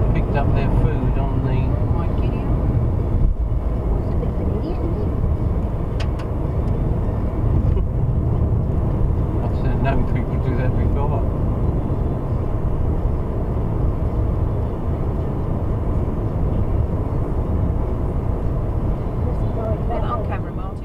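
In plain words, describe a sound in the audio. A car engine hums steadily under constant road and wind noise.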